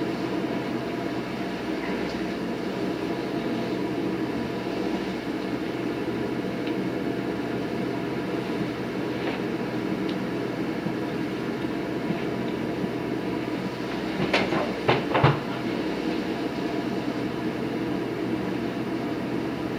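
A large leaf vacuum machine roars steadily.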